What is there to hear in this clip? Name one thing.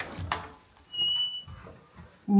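An electronic door lock beeps once.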